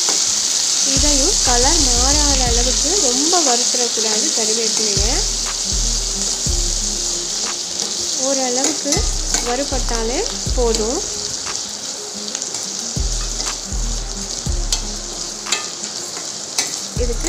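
A spatula scrapes and clicks against a metal pan.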